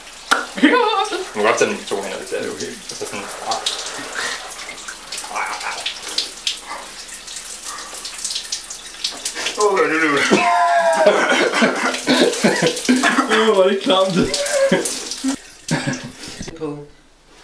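A young man talks with animation close by in a small echoing room.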